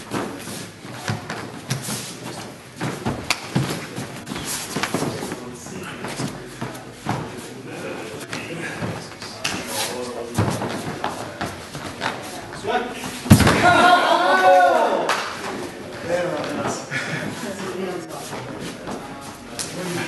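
Bodies collide with dull thuds as two men grapple.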